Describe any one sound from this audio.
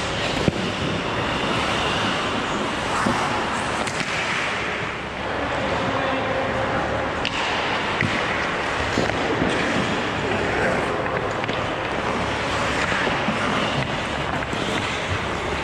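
Skate blades scrape and hiss across ice in a large echoing rink.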